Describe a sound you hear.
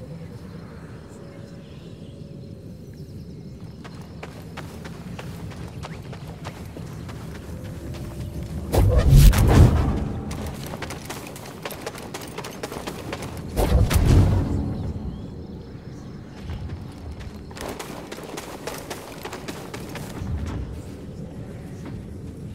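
Footsteps thud softly on grass and dirt.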